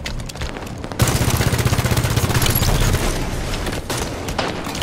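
Gunfire crackles in rapid bursts.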